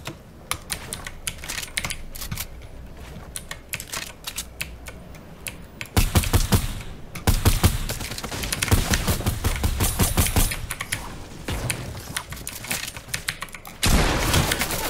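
Wooden panels clatter rapidly into place.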